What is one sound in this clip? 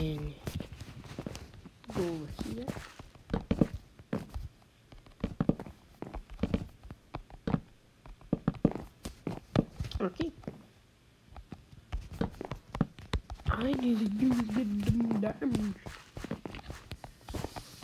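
Wooden blocks are placed with quick, soft knocking taps.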